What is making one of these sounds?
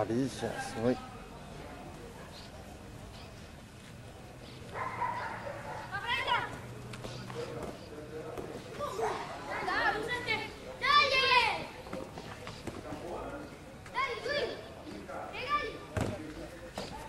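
A football thuds when kicked.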